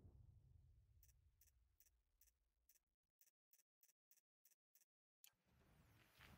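Soft menu clicks tick in a quick, even row.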